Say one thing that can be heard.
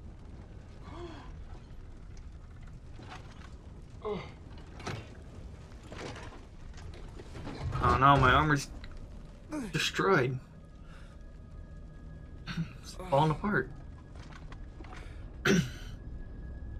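A young man groans and grunts in pain, close by.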